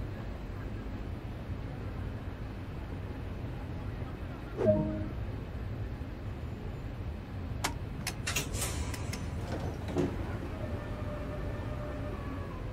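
A train's engine hums low and steady while standing still.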